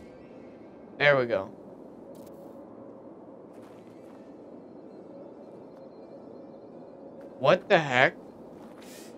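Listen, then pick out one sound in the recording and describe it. A young man speaks briefly into a close microphone with animation.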